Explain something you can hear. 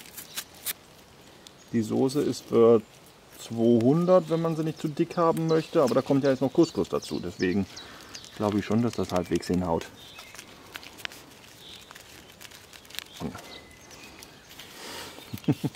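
A plastic packet crinkles and rustles in hands.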